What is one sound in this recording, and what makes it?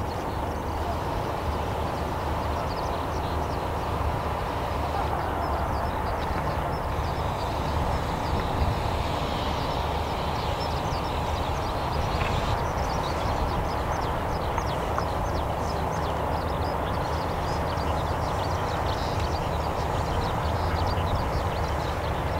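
A crowd murmurs and chatters nearby outdoors.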